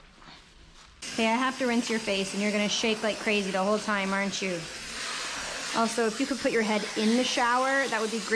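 Water sprays from a hose onto a dog.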